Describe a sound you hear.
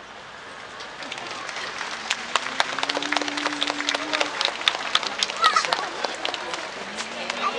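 A crowd claps and cheers outdoors.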